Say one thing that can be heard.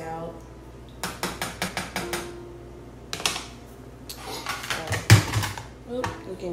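A spoon scrapes and knocks against a pot.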